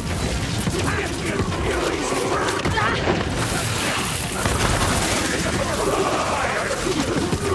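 An electric weapon crackles and zaps in rapid bursts.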